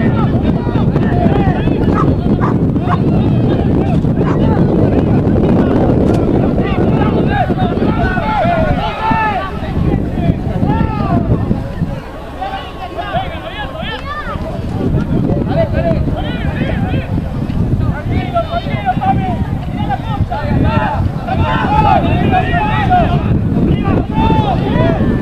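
A crowd of spectators shouts and cheers from nearby.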